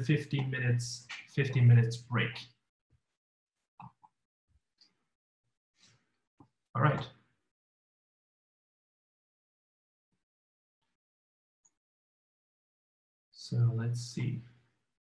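A man speaks calmly over an online call, pausing between phrases.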